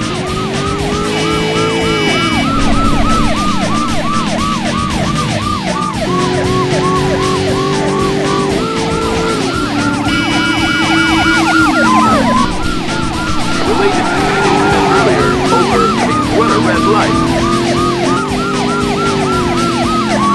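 A car engine roars, rising and dropping in pitch as it changes gear.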